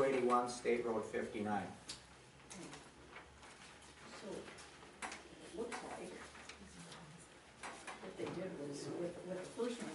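An elderly man speaks calmly in a quiet room.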